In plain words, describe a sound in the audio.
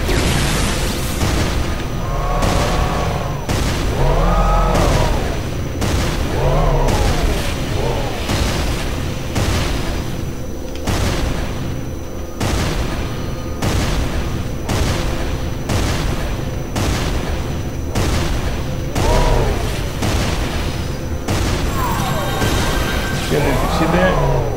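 An engine hums low and steady.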